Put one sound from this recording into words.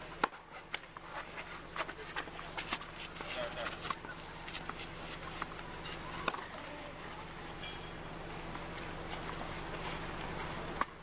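A tennis ball bounces repeatedly on a clay court.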